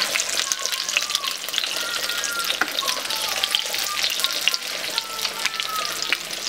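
A wooden spatula scrapes against a pan.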